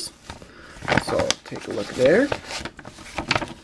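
Paper rustles and crinkles as hands handle a letter.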